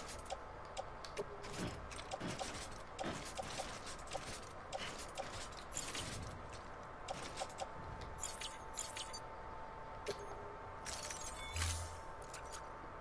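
Soft menu clicks tick again and again.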